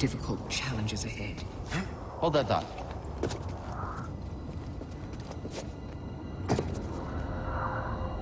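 Footsteps crunch on rocky ground.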